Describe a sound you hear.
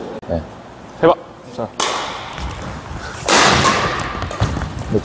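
Rackets strike a shuttlecock with sharp pops.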